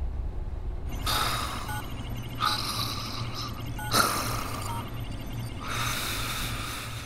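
A computer console beeps and chirps as keys are tapped.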